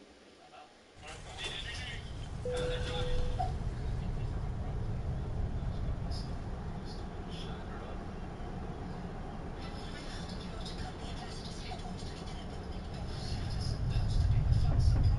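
A jet's engines drone steadily with a low rumble inside the cabin.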